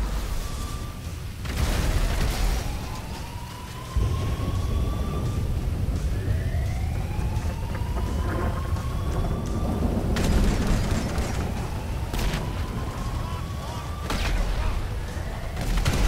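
Fires crackle and roar.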